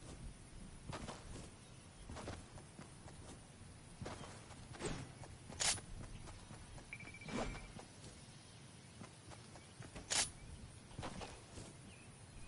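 Footsteps patter quickly through grass.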